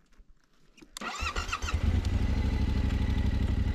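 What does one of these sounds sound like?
A motorcycle engine starts and runs loudly close by.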